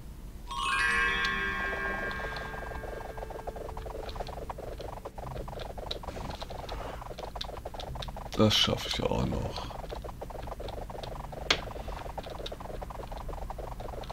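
Quick chopping hits sound from a game, over and over.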